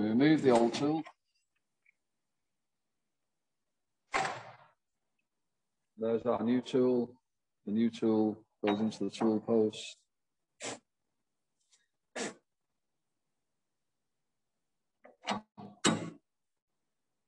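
A man talks calmly, heard through an online call.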